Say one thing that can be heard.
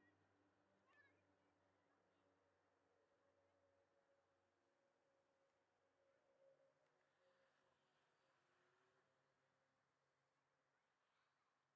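Jet engines drone steadily far overhead.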